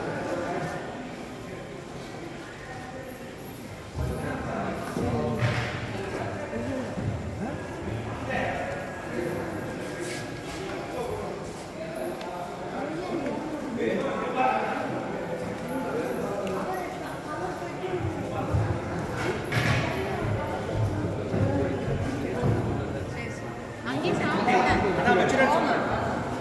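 A crowd of men and women murmurs and chatters in a large echoing hall.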